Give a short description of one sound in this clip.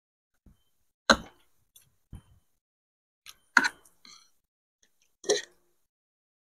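A man chews and smacks his lips loudly.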